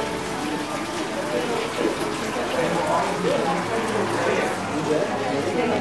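Water trickles from a hose into a pond.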